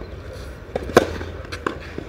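A racket strikes a tennis ball with a sharp pop.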